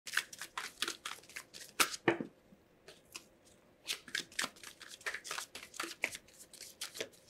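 Cards shuffle with quick, crisp flicks close by.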